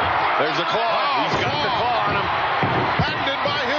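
A body thuds onto a wrestling mat.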